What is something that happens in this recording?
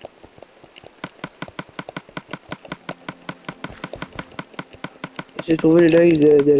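A pickaxe taps rapidly and steadily on stone.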